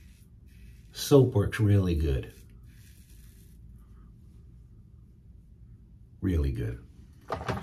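A middle-aged man talks calmly up close.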